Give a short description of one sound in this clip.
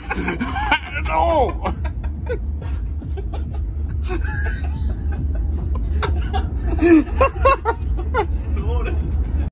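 A man whoops and shouts excitedly inside a car.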